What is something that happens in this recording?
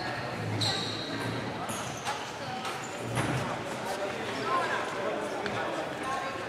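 Young girls chat nearby in a large echoing hall.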